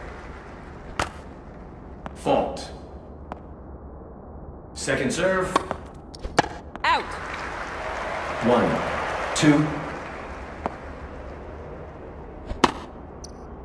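A tennis ball is struck by a racket with sharp pops.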